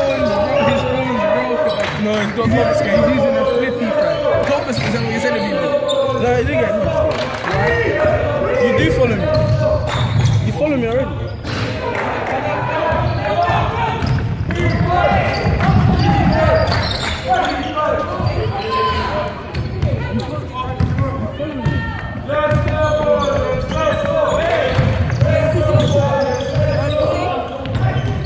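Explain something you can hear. Young men call out and talk loudly in a large echoing hall.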